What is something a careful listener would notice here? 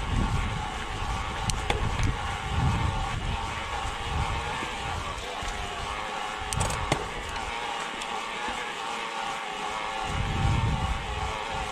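Bicycle tyres crunch steadily over a gravel track.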